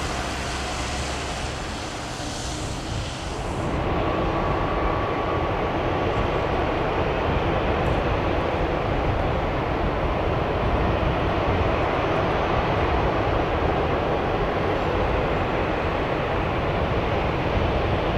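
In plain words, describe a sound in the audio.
A jet airliner's engines roar loudly nearby.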